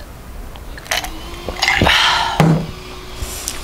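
A young woman exhales loudly after drinking.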